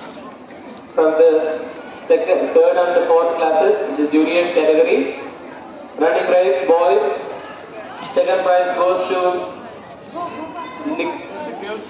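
A man speaks loudly close by.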